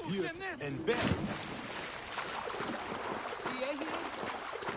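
Water splashes as a swimmer paddles.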